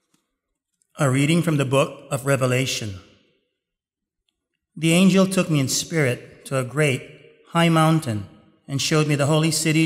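A man reads aloud calmly through a microphone in a large echoing hall.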